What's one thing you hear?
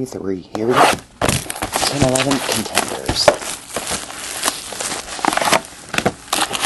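Plastic wrapping crinkles and tears.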